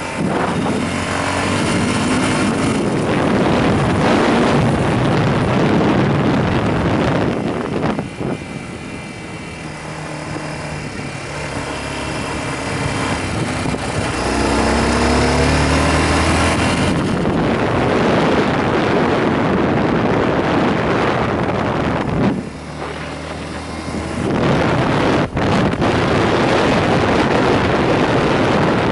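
Wind rushes loudly against a helmet.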